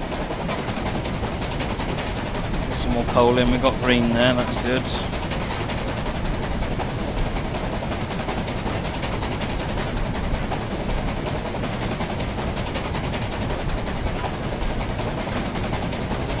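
A steam locomotive rumbles steadily along the rails.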